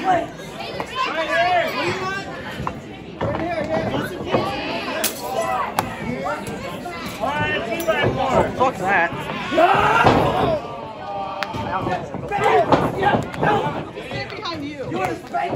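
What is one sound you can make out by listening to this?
A crowd shouts and cheers nearby in an echoing hall.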